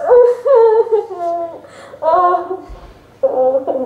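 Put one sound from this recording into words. A young girl sobs close by.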